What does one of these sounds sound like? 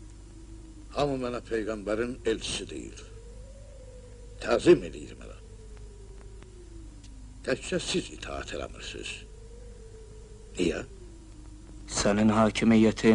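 A man speaks loudly in short bursts.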